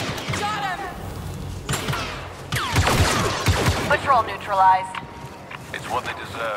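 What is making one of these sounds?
Blaster rifles fire rapid, sharp zapping shots.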